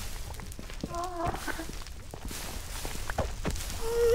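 Fire crackles and pops nearby.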